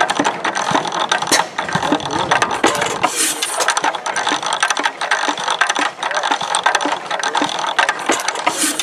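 A drive chain rattles over turning sprockets.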